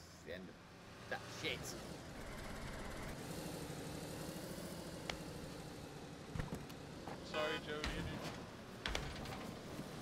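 A car engine rumbles while idling.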